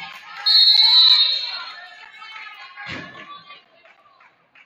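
A crowd of spectators cheers and chatters.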